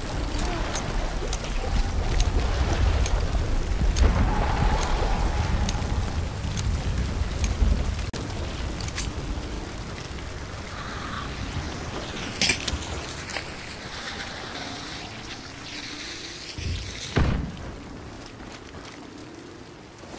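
Heavy rain pours down outdoors.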